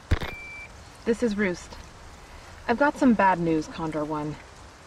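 A woman speaks calmly through a radio.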